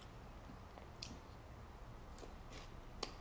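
A young woman slurps and chews food quietly.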